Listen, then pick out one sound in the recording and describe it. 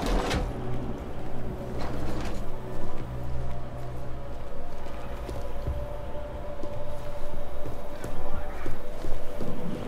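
Machinery hums steadily and low.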